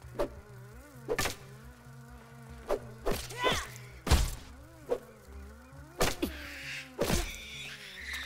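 Sharp blows land as a weapon strikes a giant spider.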